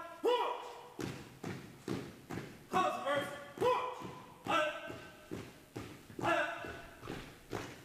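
Boots tramp on a hard floor as a small group marches in step in a large echoing hall.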